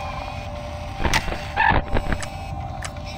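An electronic monitor switches views with a short burst of static and clicks.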